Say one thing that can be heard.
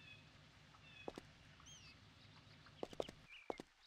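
Footsteps tread on stone steps.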